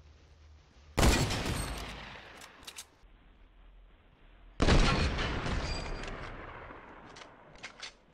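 A rifle fires twice, each shot echoing away.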